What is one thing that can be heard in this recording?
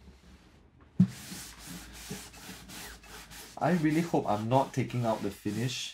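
A cloth rubs and wipes over a guitar's wooden body.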